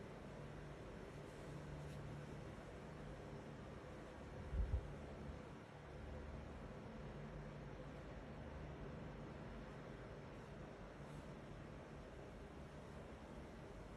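Fingers push small beads that click softly against each other on cloth.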